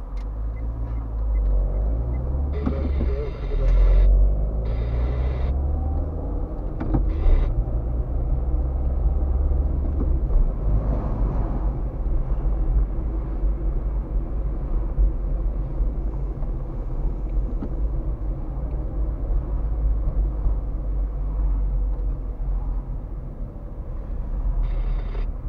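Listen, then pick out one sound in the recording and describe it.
Tyres roll on a damp road.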